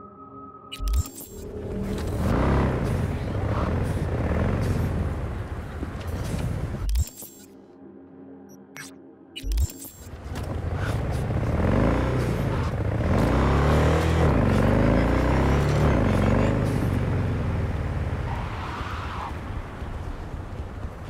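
A motorcycle engine roars and revs as it rides along.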